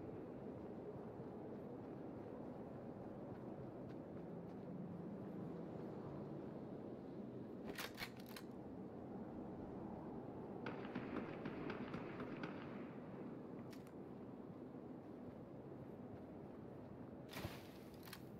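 Footsteps crunch quickly over snow and grass.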